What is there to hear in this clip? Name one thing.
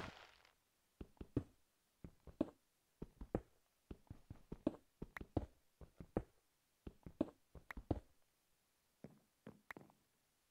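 Footsteps thud on stone and wooden blocks.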